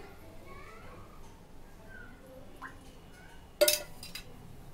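A metal spoon taps against a bowl.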